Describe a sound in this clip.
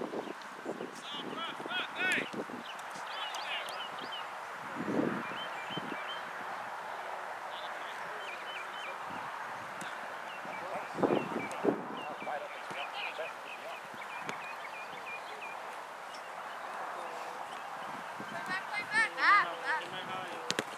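Teenage boys shout to each other across an open field.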